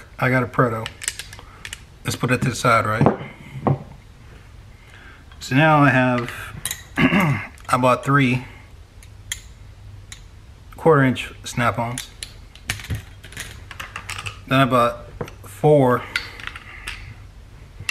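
Small metal parts clink together in a man's hands.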